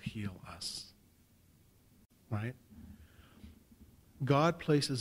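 A middle-aged man speaks calmly into a microphone, heard through a loudspeaker.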